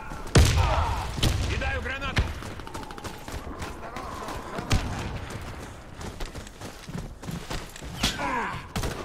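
Rifle shots crack loudly and ring out.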